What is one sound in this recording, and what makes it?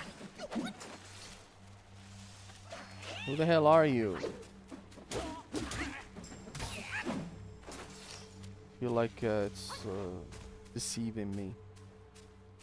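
Heavy blows thud and clash in a fight.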